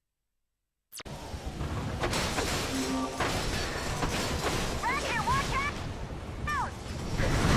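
Metal clanks as a wrench smashes crates.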